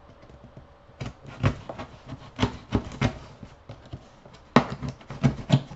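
Stiff paper rustles and crinkles as it is folded by hand.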